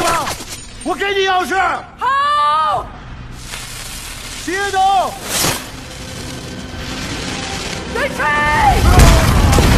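A young woman shouts urgently.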